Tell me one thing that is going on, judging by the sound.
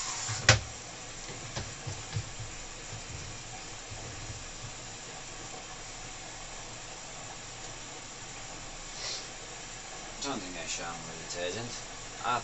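Wet laundry tumbles and thuds softly inside a washing machine.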